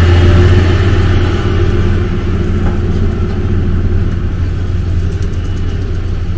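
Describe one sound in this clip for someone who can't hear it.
A seeding implement rattles over the soil.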